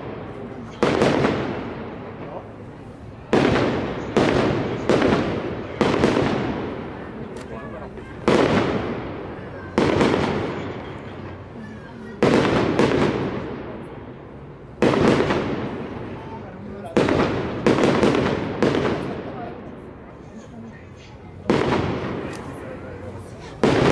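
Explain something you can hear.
Fireworks crackle and fizz in the sky.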